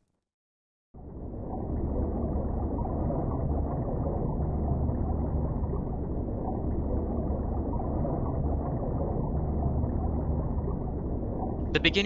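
Water rumbles and bubbles deep underwater.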